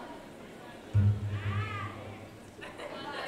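A bass guitar booms a low note.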